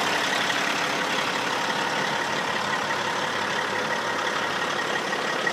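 A truck engine idles with a steady hum.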